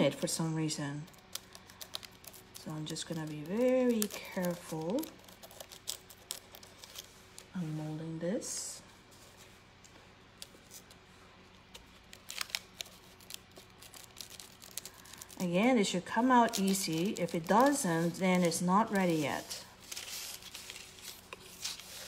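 A knife blade scrapes and taps against a hard plastic sheet.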